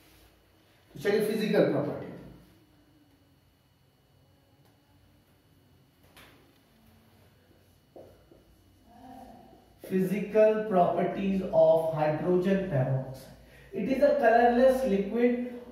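A man speaks nearby, explaining calmly.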